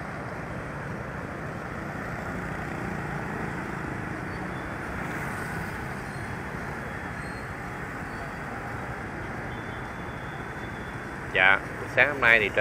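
Motorbikes and cars hum steadily along a busy street.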